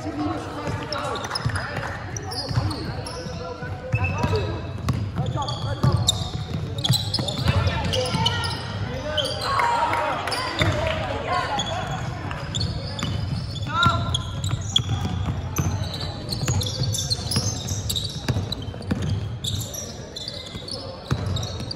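Sneakers squeak on a hardwood court in a large echoing hall.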